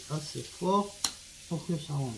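A small plastic part snaps into place with a sharp click.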